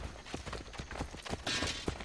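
Footsteps run on packed earth.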